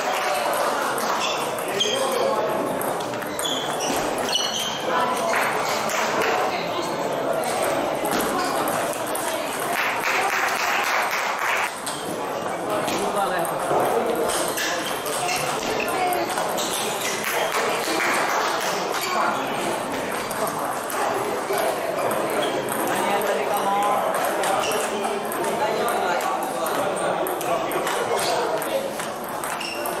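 A table tennis ball clicks back and forth across a table, struck by paddles.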